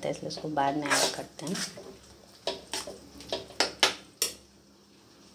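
A metal spoon scrapes and clinks against a pan as thick food is stirred.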